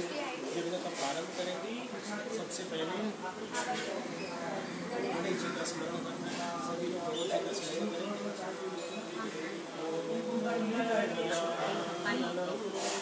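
A man speaks steadily and calmly close by.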